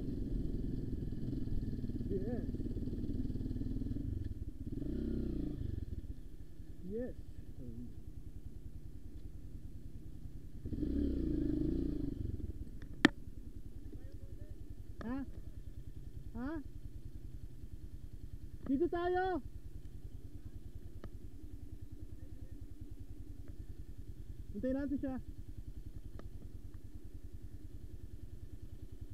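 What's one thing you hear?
A dirt bike engine runs with a low, even throb.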